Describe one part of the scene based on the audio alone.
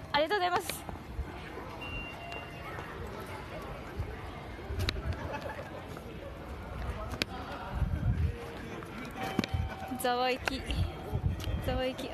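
A young woman laughs close to the microphone.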